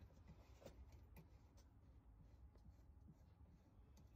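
A hand rattles metal parts inside a car door.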